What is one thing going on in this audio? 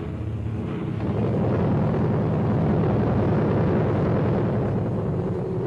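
Propeller plane engines roar loudly close by.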